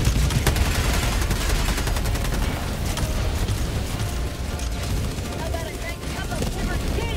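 A deep explosion rumbles on and on.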